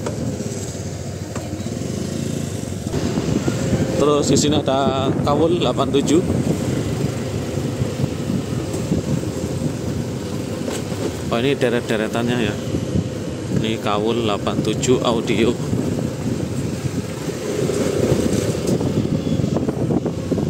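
A motorcycle engine hums steadily at close range.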